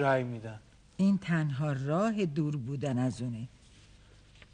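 An elderly woman speaks close by.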